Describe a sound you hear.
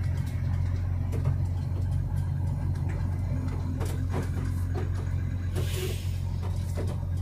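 A large truck passes by close in the opposite direction.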